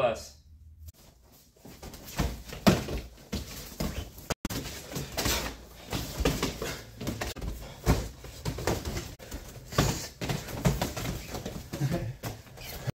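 Feet thud and shuffle on a padded floor as two people spar.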